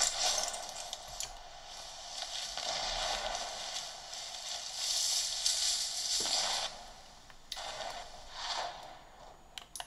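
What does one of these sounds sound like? Rushing game sound effects play from a handheld console's small speakers.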